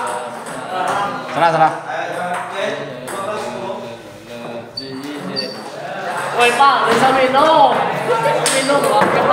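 A table tennis ball clicks back and forth between paddles and table.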